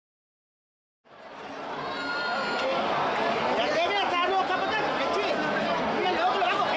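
A large outdoor crowd of men and women shouts and cheers excitedly.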